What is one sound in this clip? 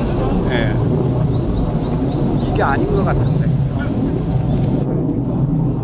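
A woman speaks calmly outdoors.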